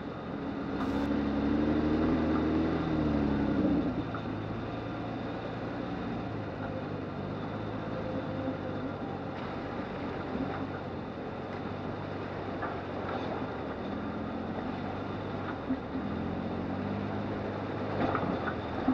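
A vehicle engine hums and revs at low speed.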